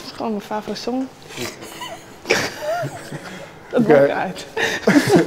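Two young women laugh heartily close by.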